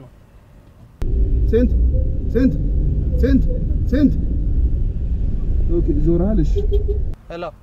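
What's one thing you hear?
A car engine hums with a low rumble while driving.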